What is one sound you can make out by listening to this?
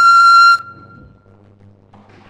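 A pan flute plays a clear, bright note that rings out and fades.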